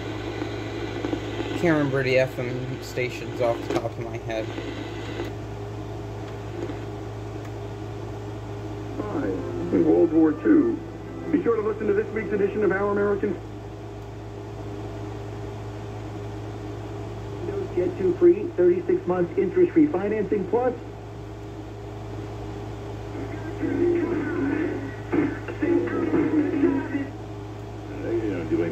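Buttons on a portable stereo click as they are pressed.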